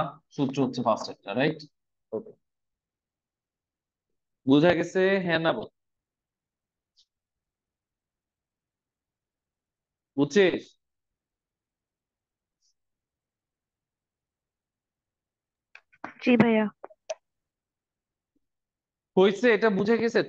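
A man speaks calmly in short bursts with long pauses.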